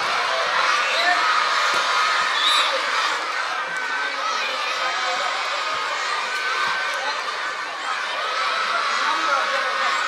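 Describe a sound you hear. A large crowd of children cheers and shouts outdoors.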